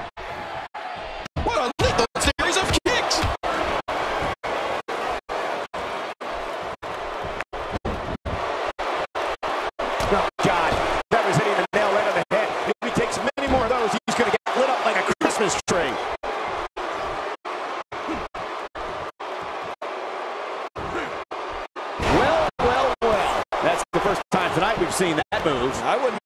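A large arena crowd cheers.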